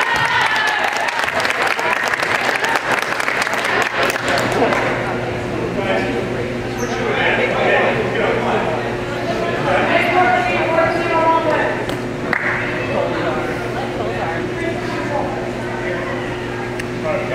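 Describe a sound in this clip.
Teenage boys call out to each other in an echoing gym.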